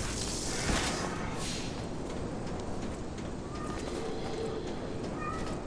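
Footsteps run on a wooden floor.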